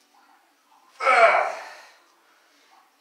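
A young man grunts with strain.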